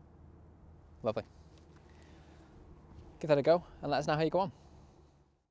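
A man speaks calmly and clearly, close by, outdoors.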